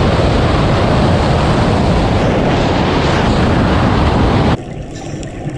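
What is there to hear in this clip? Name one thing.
Wind roars loudly.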